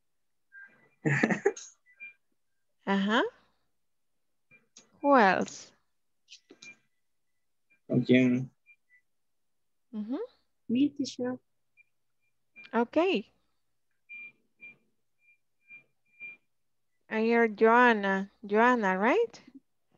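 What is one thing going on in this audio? A woman speaks in short phrases over an online call, with pauses between them.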